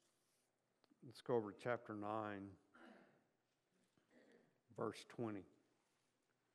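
A middle-aged man speaks slowly and solemnly into a microphone.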